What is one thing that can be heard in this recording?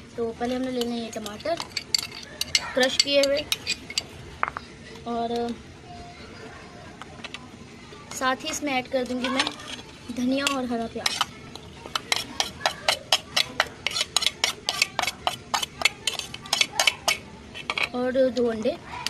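A metal spoon clinks and scrapes against a bowl.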